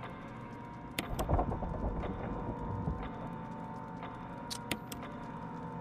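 Clock gears click and grind as a mechanism turns.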